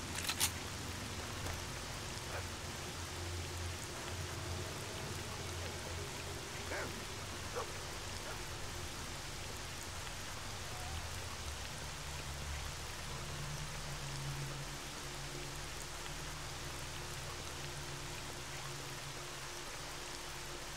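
Footsteps tread on wet ground.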